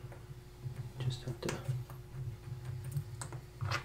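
Small metal watch parts clink softly as they are picked up.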